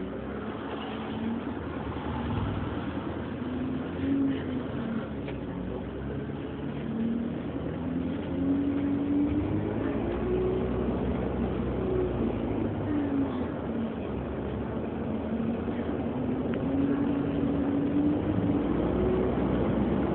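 The bus body rattles and creaks over the road.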